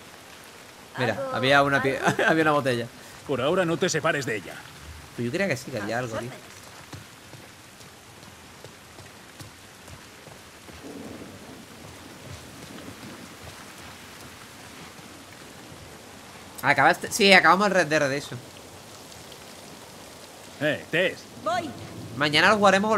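A young man talks calmly into a microphone, with pauses.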